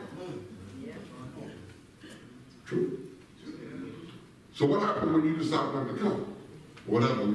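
A man preaches loudly through a microphone in a large echoing hall.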